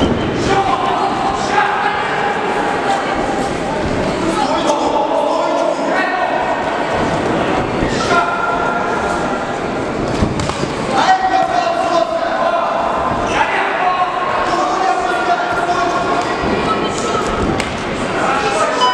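Spectators shout encouragement in a large echoing hall.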